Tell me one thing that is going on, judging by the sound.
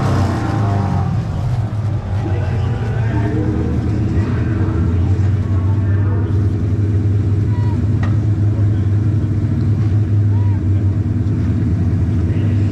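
A car engine idles with a deep, loud rumble close by.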